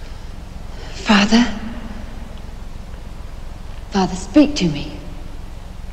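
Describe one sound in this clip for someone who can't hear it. A young woman speaks a few quiet words nearby.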